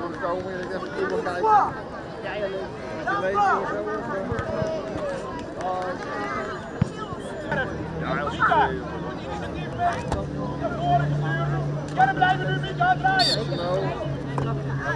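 Young male players shout and cheer with excitement outdoors.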